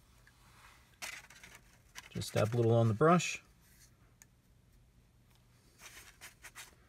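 A plastic model knocks and clicks lightly as it is handled.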